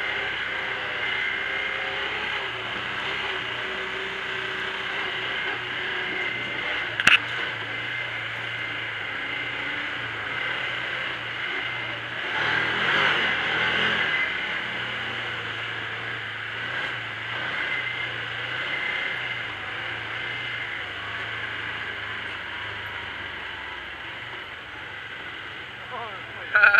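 Tyres crunch over a bumpy dirt trail.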